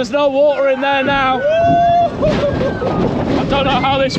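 Wind rushes past loudly as the coaster speeds downhill.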